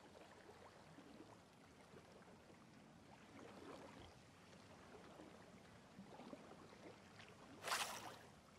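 Water laps gently against a shore.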